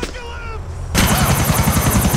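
A helicopter's rotor thumps rapidly overhead.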